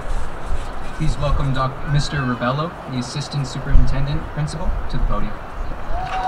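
A man speaks calmly through loudspeakers outdoors.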